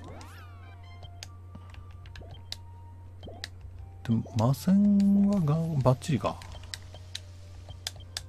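Short electronic menu blips sound again and again.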